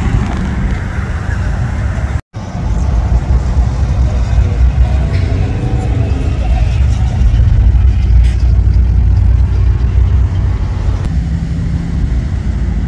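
Tyres hiss on the road as vehicles drive by.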